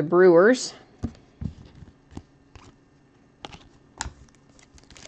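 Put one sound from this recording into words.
Trading cards click and tap against a table.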